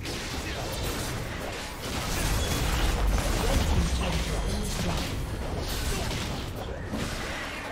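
Spell effects crackle and burst in a busy game battle.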